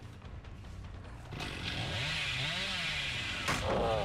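A chainsaw revs loudly.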